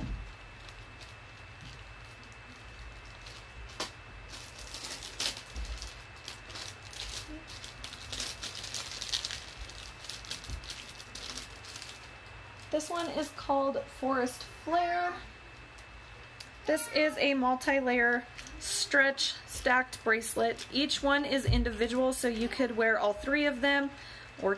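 Small objects rustle and click in a woman's hands.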